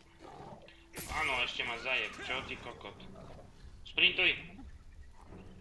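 A large beast snarls and growls.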